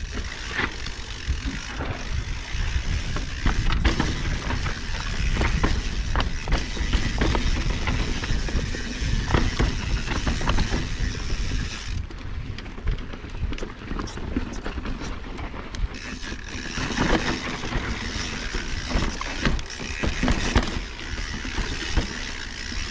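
A bicycle frame and chain clatter over bumps.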